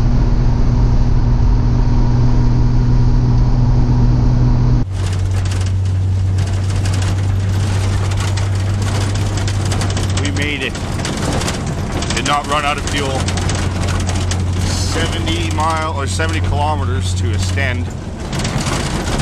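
A car engine hums and rumbles steadily.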